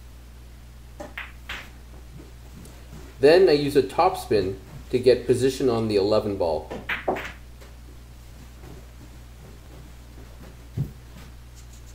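Pool balls click together on a table.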